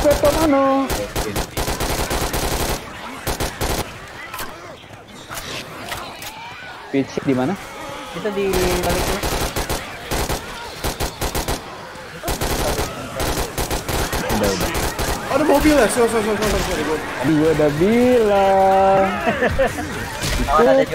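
Rifle gunfire rattles in rapid bursts.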